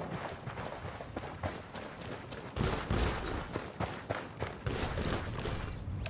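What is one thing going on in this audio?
Footsteps run across gravel and hard ground.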